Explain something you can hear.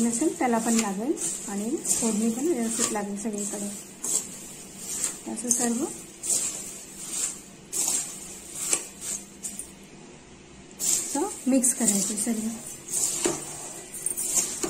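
A metal spoon scrapes and stirs in a pan.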